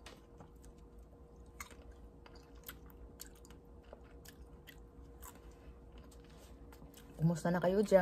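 A woman chews food with soft, wet mouth clicks.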